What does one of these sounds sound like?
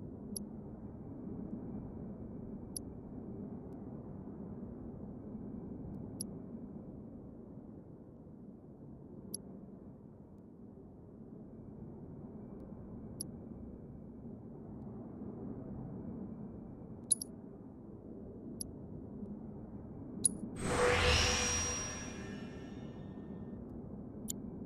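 A low ambient drone hums steadily underneath.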